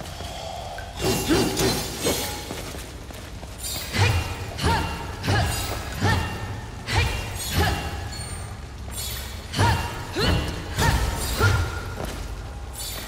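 Sword blows strike a crystal with sharp ringing clashes.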